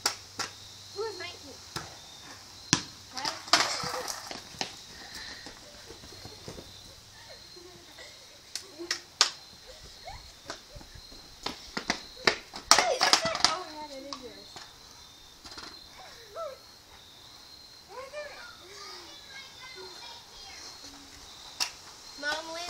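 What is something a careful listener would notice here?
Children shout and call out outdoors.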